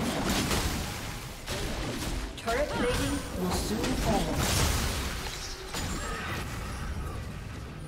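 Game spells and weapons whoosh and clash in a fight.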